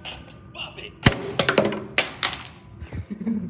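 A plastic toy clatters and bounces on a hard floor in an echoing hallway.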